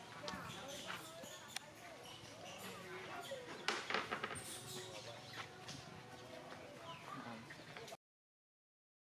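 Monkeys squeal and chatter nearby outdoors.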